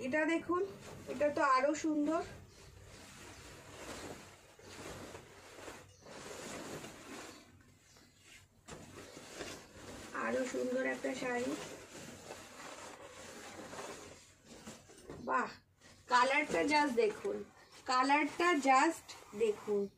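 Silk fabric rustles as it is unfolded.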